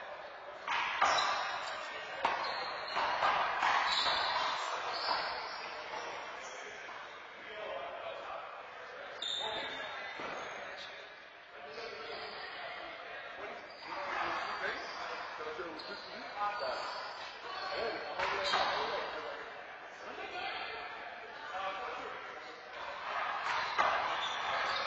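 A rubber ball smacks against a wall in an echoing court.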